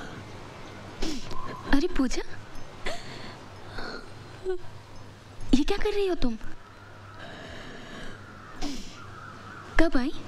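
A young woman speaks softly and warmly, close by.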